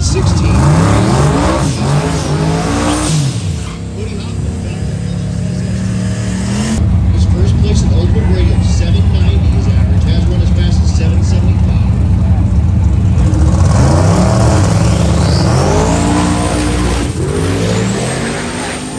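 Loud racing engines rev up and down in sharp bursts outdoors.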